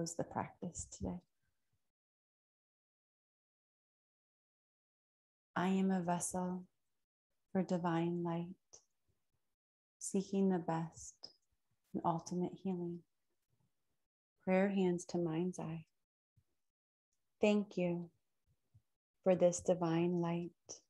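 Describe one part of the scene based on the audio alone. A woman speaks calmly and softly into a close microphone, with long pauses.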